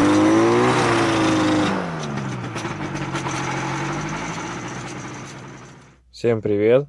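An engine drones loudly, its pitch dipping and then steadying before it fades away.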